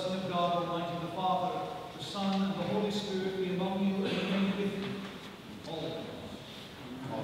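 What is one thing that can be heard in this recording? A man chants in a steady singing voice nearby.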